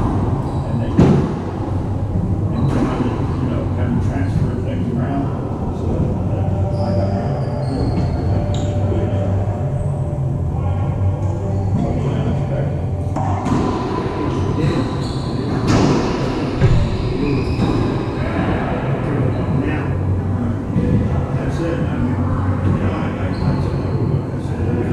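A ball smacks sharply off the walls of a large echoing court.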